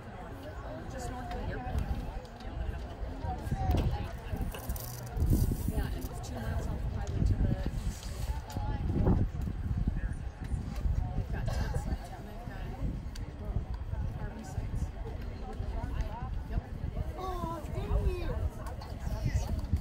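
Several adults talk casually nearby.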